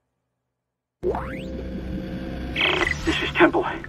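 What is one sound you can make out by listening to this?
A holographic display switches on with a rising electronic whine.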